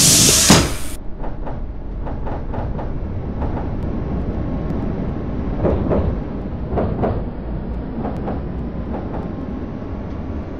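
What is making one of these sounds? Tram wheels clatter rhythmically over rail joints.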